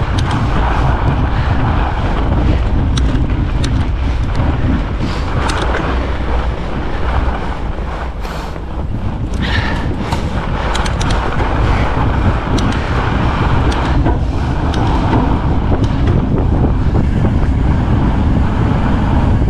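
Wind rushes loudly past, outdoors.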